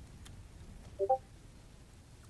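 Short electronic chimes sound as a building piece is placed.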